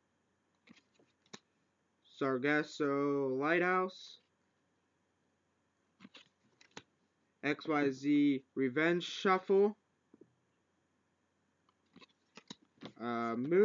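Trading cards click and rustle as they are handled.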